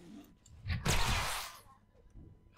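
A gun fires a burst of shots.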